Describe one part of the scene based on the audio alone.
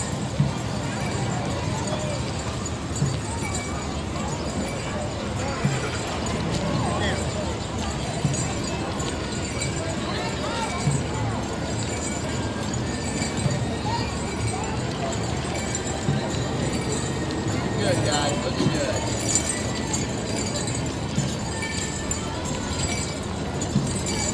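Footsteps march along the pavement, drawing closer.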